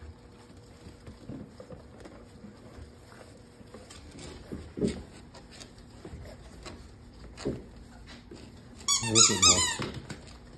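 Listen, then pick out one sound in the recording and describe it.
Small puppies scuffle and patter about on a soft floor.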